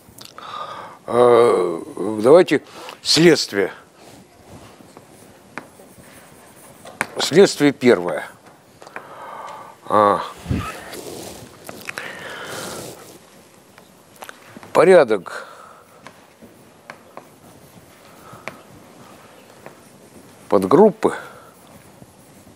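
An elderly man speaks in short bursts with long pauses.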